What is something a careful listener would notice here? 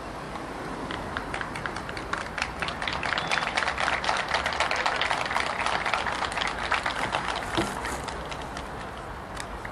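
A crowd claps and applauds outdoors.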